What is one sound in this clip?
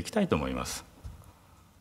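A man speaks a few brief words through a microphone in a large hall.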